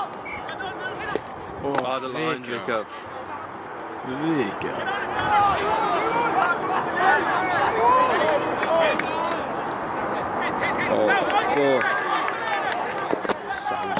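Spectators shout and cheer loudly nearby, outdoors.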